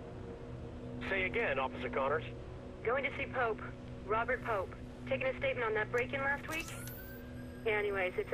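A person speaks calmly.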